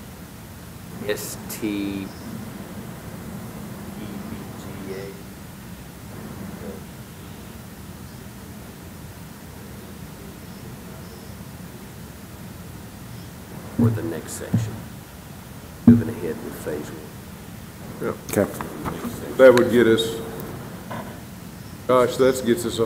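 Men talk calmly, heard through microphones in an echoing room.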